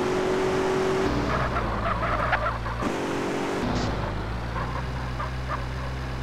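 A car thumps and rattles over rough ground.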